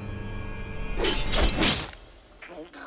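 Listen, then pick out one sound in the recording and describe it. Fighters grapple and strike with heavy thuds.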